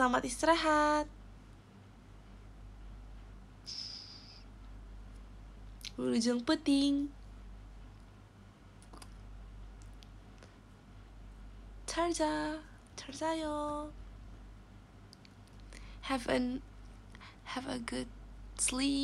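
A young woman speaks close to a microphone in short, lively bursts with pauses between.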